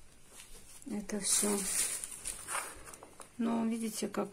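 Loose soil scrapes and patters off a piece of cardboard.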